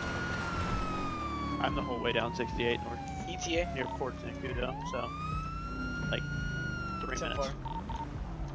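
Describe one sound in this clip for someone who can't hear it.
A police siren wails and changes pitch.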